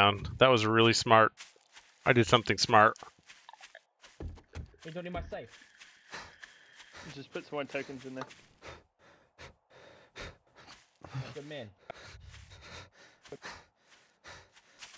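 Footsteps crunch and rustle through dry grass.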